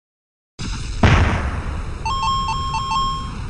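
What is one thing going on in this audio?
A car crashes with a loud metallic bang.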